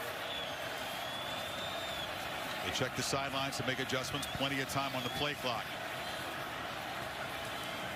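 A large crowd murmurs and roars steadily in an open stadium.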